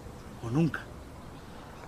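A man speaks briefly in a low voice, close by.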